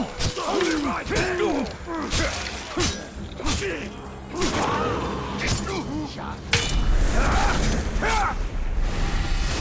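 Heavy blows thud against bodies.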